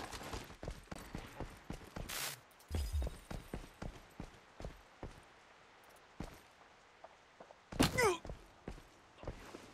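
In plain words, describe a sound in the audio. Footsteps thud quickly and steadily on a hard surface.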